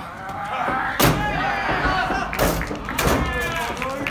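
A body slams onto a wrestling ring mat with a loud thud.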